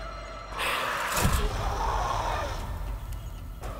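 Flames burst up with a whoosh and crackle.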